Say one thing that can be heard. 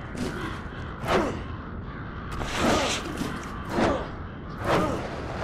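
Wind whooshes past in loud, repeated rushes.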